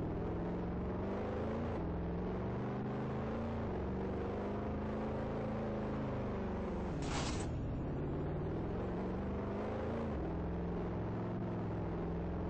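A car engine hums steadily and its pitch rises and drops as it shifts gears.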